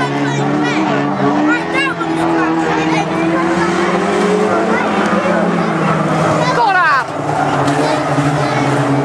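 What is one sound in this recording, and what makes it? Racing car engines roar loudly as the cars speed around a track.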